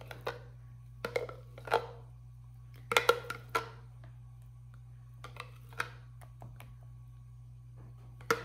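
A spoon scrapes and clinks against a glass jar.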